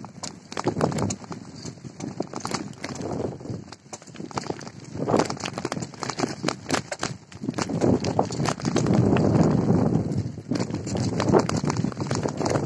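Tyres roll and crunch over a rough gravel track.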